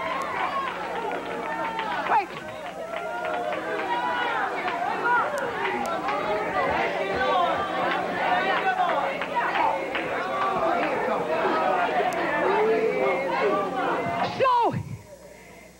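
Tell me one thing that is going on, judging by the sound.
A crowd of men and women talk loudly all at once.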